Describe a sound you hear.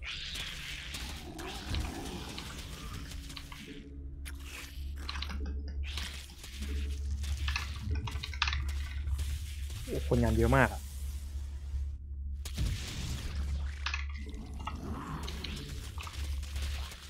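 Electronic game sound effects chirp, hum and zap.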